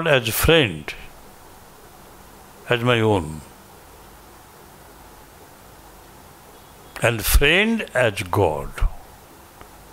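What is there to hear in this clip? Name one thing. An elderly man speaks calmly into a microphone in short bursts with long pauses.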